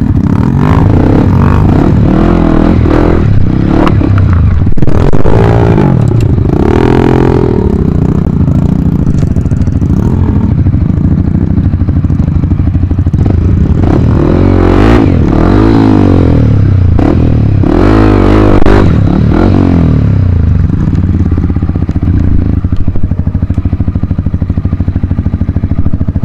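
A dirt bike engine idles and revs loudly close by.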